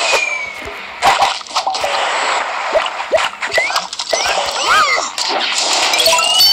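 Playful cartoon sound effects pop and chirp.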